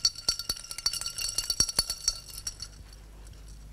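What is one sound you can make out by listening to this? A spoon clinks against a glass as it stirs.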